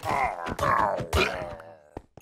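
A sword strikes a skeleton with sharp hits.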